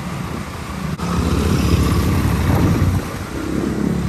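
Another motorcycle engine roars close by.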